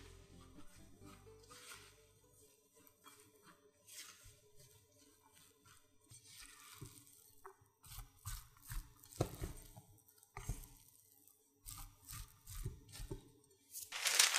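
A spatula scrapes and stirs grated potato in a bowl.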